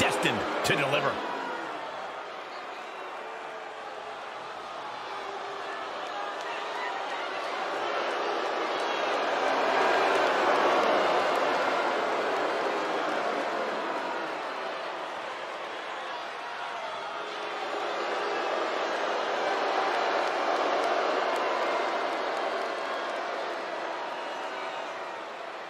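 A large crowd cheers and roars in a big arena, swelling and fading.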